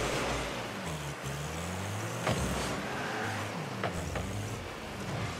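A car engine hums and revs steadily.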